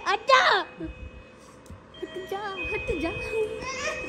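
A young woman laughs softly close by.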